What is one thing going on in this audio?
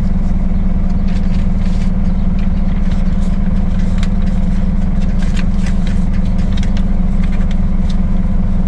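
Sheets of paper rustle and crinkle.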